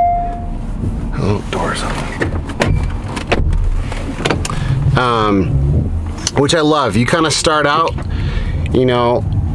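A man talks casually up close in a car.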